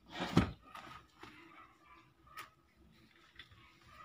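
A desk chair creaks and rolls as someone sits down.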